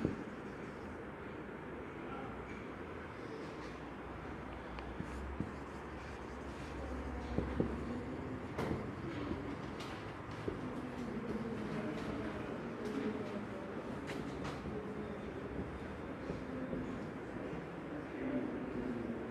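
A man speaks calmly, close by, lecturing.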